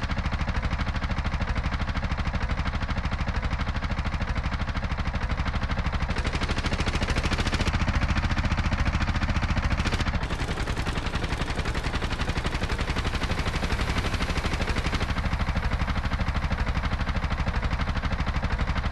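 A small engine putters steadily as a vehicle drives along.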